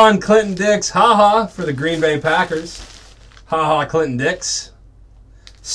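Plastic wrapping crinkles as hands handle it.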